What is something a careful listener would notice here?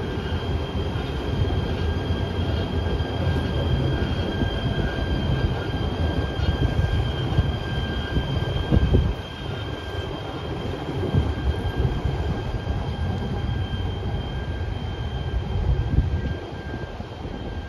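Light rail trams rumble past close by on the tracks.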